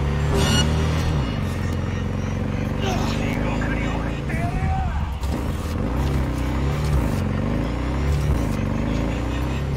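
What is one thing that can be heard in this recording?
A motorcycle engine hums and revs as it rides along.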